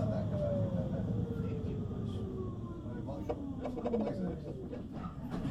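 A tram's electric motor whines and falls in pitch as the tram slows to a stop.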